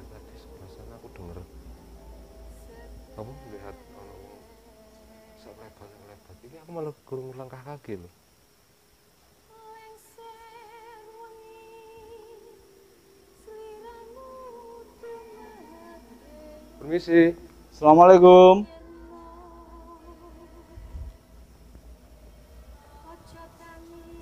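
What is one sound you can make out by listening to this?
Young men talk quietly nearby.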